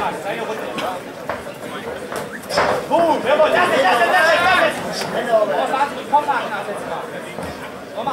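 Gloves and kicks thud against bodies.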